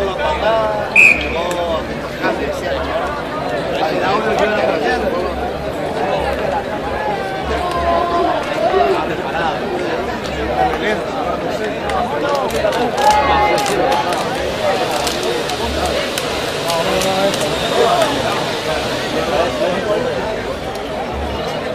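Young men shout to each other across the field.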